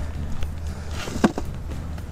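Mulch pours from a shovel into a metal wheelbarrow.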